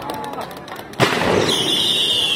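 A firework launches with a sudden loud bang.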